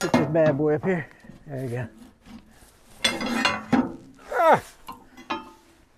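A metal cover creaks and clanks as it is pried open.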